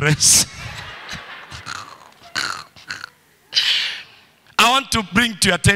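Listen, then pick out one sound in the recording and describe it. A man preaches with animation through a microphone and loudspeakers in a large echoing hall.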